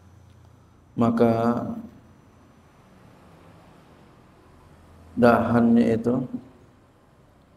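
A man speaks slowly and calmly into a microphone, in drawn-out phrases.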